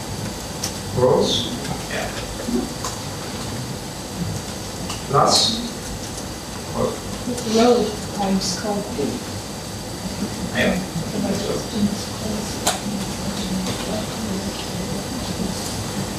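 A man speaks calmly, heard through a microphone.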